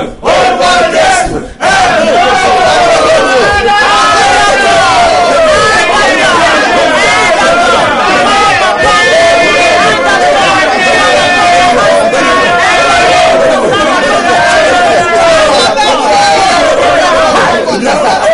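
A woman sings loudly into a microphone.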